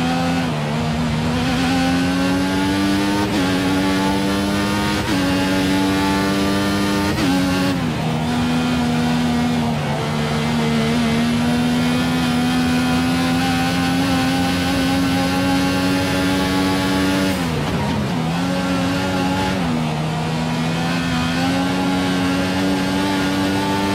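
A racing car engine screams loudly, rising in pitch through the gears and dropping as it slows.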